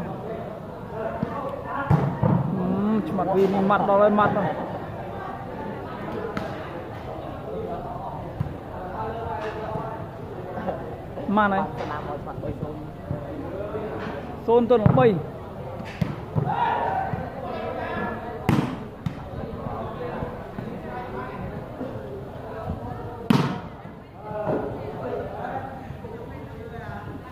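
A crowd of spectators chatters in the background.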